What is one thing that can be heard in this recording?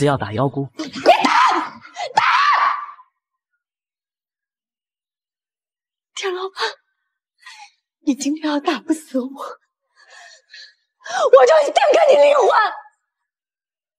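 A young woman shouts and sobs in anguish close by.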